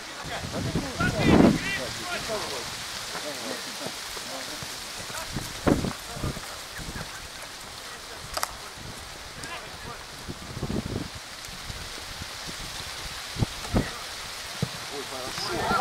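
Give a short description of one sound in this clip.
A football is kicked on an outdoor pitch.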